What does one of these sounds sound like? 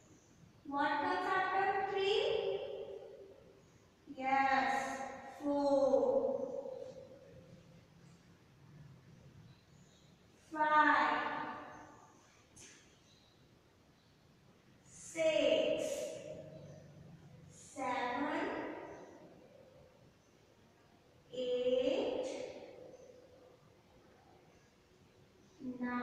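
A young woman speaks slowly and clearly in drawn-out phrases, with pauses between them.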